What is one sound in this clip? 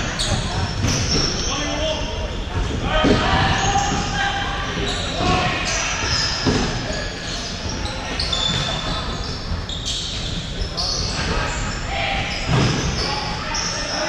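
Players shout to each other across the hall.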